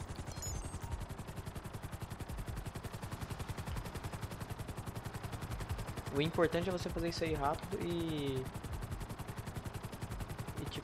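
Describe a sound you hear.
A helicopter's rotor chops steadily.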